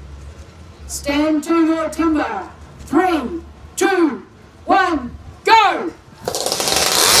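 A chainsaw revs loudly in short bursts.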